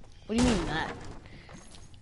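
A pickaxe strikes wood with sharp knocks.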